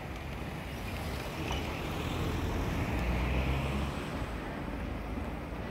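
Cars drive past close by with engines rumbling and tyres on the road.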